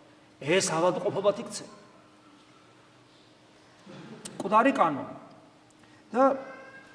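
A man speaks slowly and deliberately into a microphone, with long pauses.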